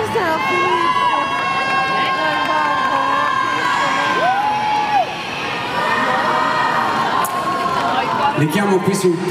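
A man sings into a microphone over loudspeakers in a large hall.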